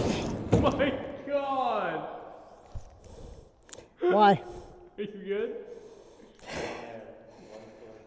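A young man groans in pain close by.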